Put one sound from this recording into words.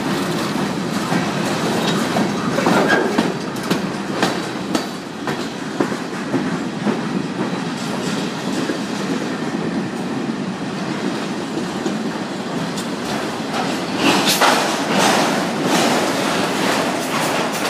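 A freight train rumbles past close by with a steady roar.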